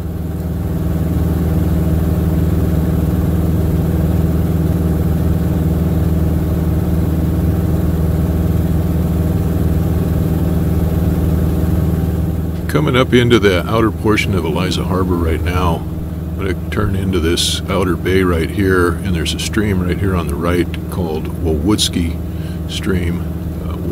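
A small plane's engine drones steadily in flight.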